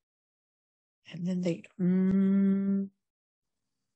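A woman chants a long held syllable close to a microphone.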